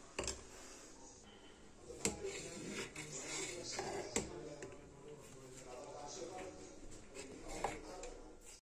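A metal ladle scrapes and clinks against a pot.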